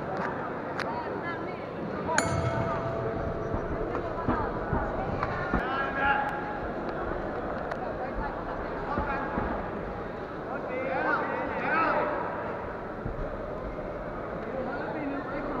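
Spectators shout encouragement in a large echoing hall.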